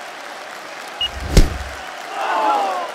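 A boxing glove lands a heavy punch with a loud thud.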